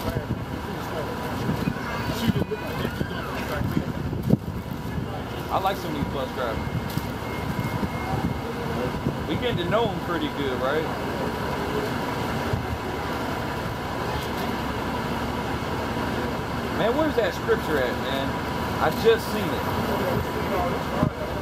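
A man speaks loudly, close by, outdoors.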